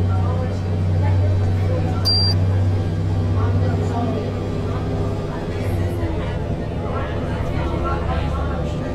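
A bus engine drones steadily at a low pitch.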